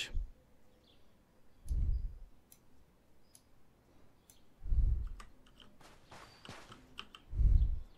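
Soft menu clicks sound as items are moved between slots.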